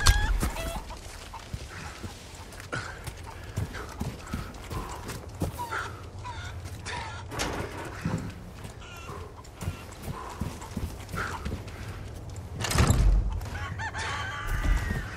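Footsteps crunch slowly over dirt and gravel.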